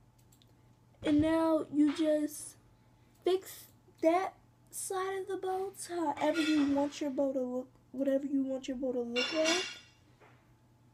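A young girl speaks close by, casually.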